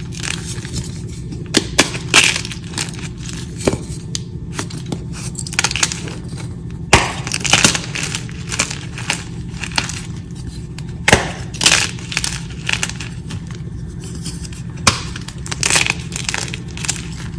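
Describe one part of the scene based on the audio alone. Chalk crumbles and crunches as hands squeeze it.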